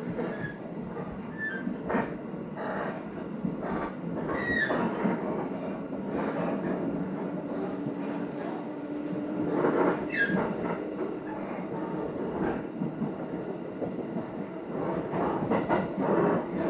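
A train rumbles and rattles steadily along the tracks.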